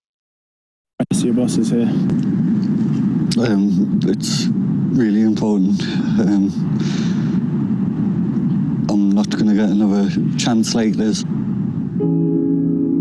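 A young man speaks hesitantly, close by.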